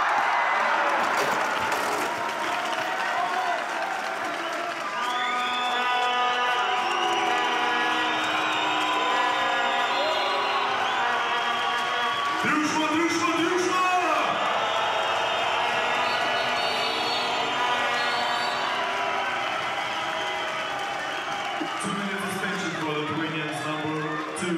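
A large crowd cheers and chants in an echoing arena.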